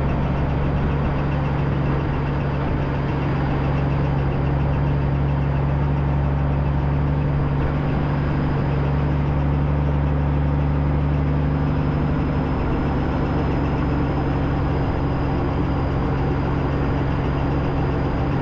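A motorcycle engine rumbles steadily at low speed.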